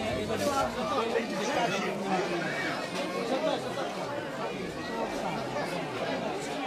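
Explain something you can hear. A crowd of people talks and shouts all around, close by.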